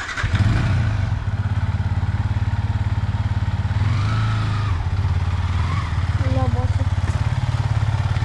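A motorcycle engine idles with a deep, throbbing rumble close by.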